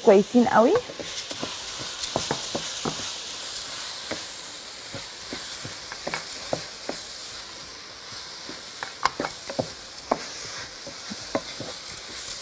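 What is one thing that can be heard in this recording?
A wooden spoon scrapes and taps against a pot while stirring rice.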